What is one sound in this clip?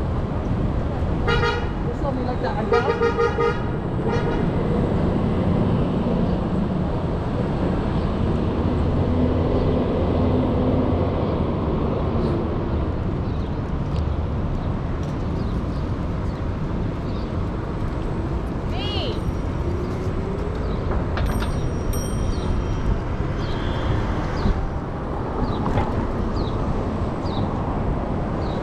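Wind rushes and buffets steadily past a moving bicycle outdoors.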